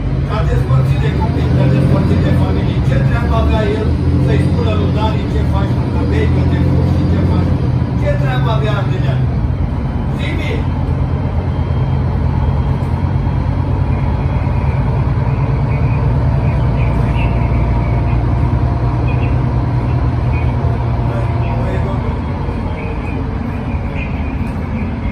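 A tram rumbles steadily along its track, heard from inside.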